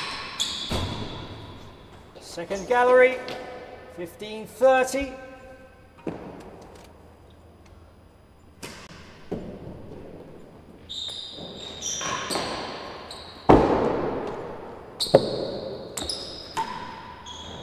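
A racket strikes a ball with sharp, echoing thwacks.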